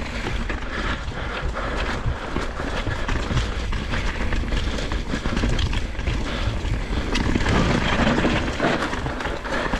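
A bicycle frame rattles and clatters over bumps.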